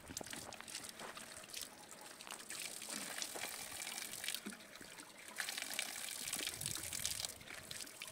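Water trickles from a spring.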